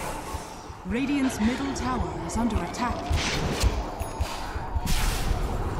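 Game battle sounds of spells and blows crackle and whoosh.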